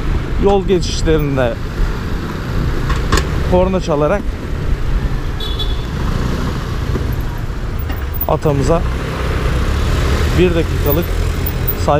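A small scooter engine hums as it rides along at low speed.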